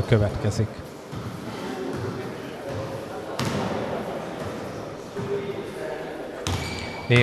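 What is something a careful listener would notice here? Men talk and call out across a large echoing hall.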